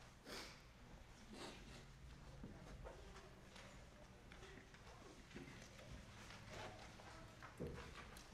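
A choir sings softly in a reverberant hall.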